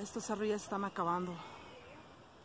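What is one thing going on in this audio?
A young girl shouts nearby outdoors.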